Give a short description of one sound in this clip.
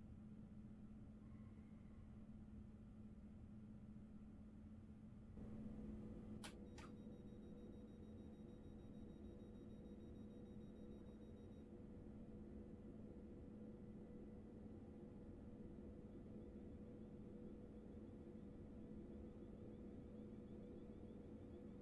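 A train's engine hums steadily.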